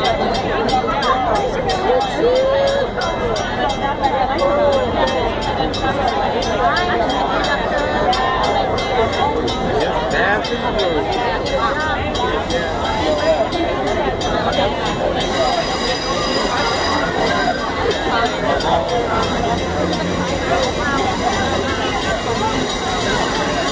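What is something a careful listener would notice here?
A crowd of adults chatters close by on an outdoor platform.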